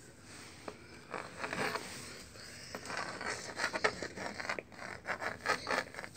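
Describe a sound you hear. A crayon scrapes across a wall.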